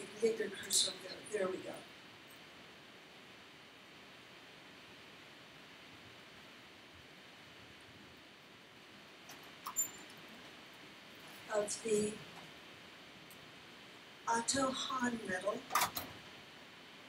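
A woman speaks at a distance in a room with some echo.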